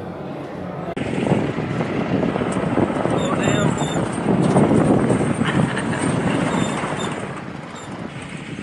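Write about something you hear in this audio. A vehicle engine rumbles as it drives.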